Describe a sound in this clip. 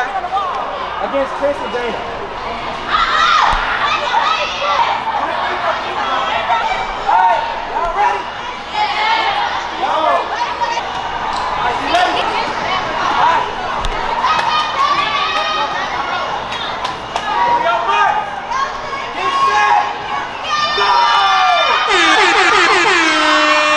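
A crowd of young people shouts and cheers excitedly in a large echoing hall.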